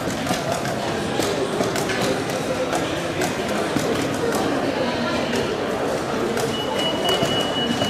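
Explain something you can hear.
Wooden chess pieces tap down on a wooden board.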